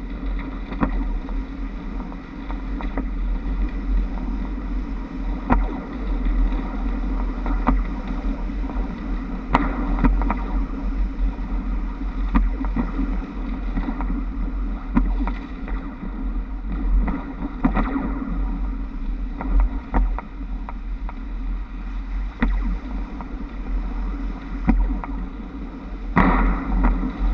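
Trolley poles clack and rattle over the overhead wires.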